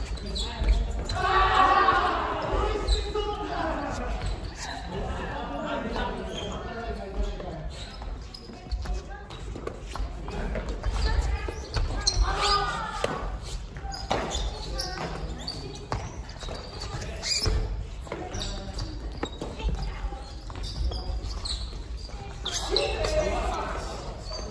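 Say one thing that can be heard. Women talk and call out nearby.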